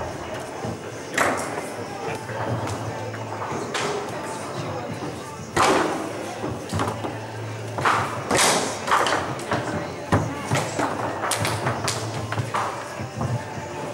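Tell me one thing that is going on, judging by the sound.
Metal rods clatter as players spin and slide them.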